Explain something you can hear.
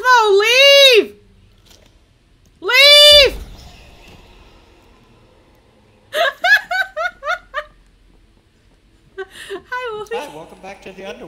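A young woman speaks and squeals excitedly into a close microphone.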